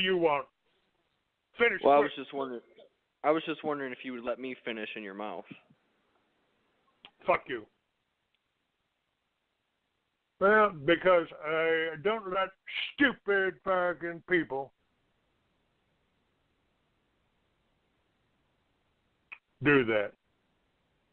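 An elderly man talks with animation over a phone line, in bursts with pauses.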